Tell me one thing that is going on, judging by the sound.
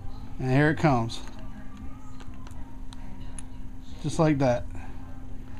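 A soldering gun hums steadily.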